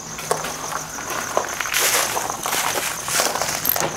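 Footsteps crunch on debris underfoot.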